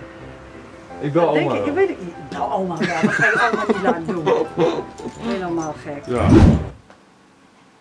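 A young man laughs and talks excitedly close by.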